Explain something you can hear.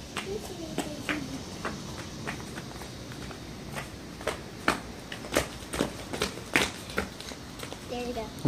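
Flip-flops slap on a hard floor.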